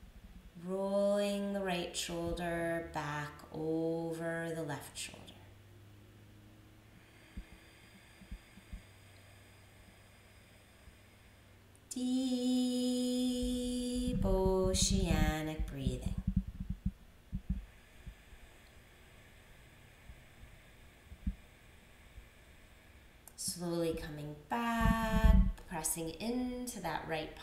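A woman speaks calmly and slowly, close by, with long pauses.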